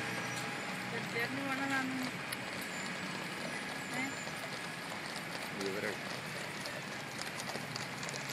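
Horses' hooves clop slowly on the road.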